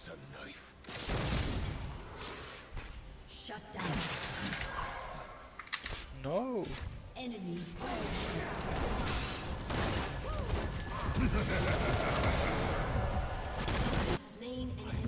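Magic blasts whoosh and crackle in a fast game fight.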